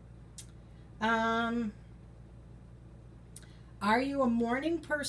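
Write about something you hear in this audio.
An older woman speaks calmly, close to a microphone.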